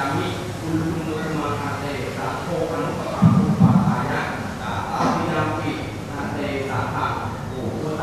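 A group of men chant together in low, steady voices.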